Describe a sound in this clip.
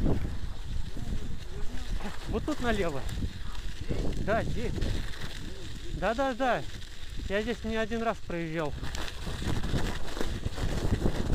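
Bicycle tyres crunch over packed snow.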